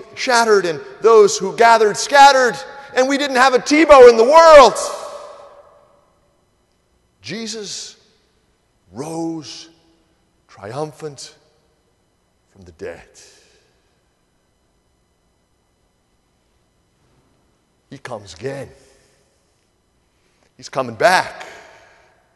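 A middle-aged man speaks with animation through a microphone in a large echoing hall.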